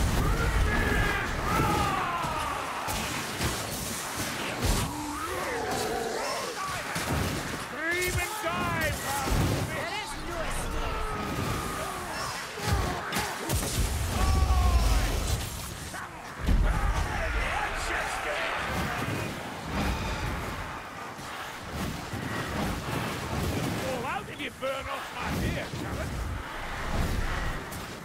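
Weapons strike and clatter in a fast fight.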